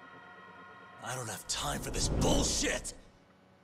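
A young man shouts angrily.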